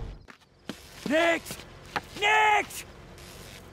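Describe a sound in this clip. A man shouts out loudly, twice.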